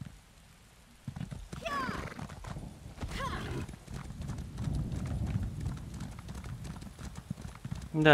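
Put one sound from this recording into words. A horse's hooves thud steadily on the ground.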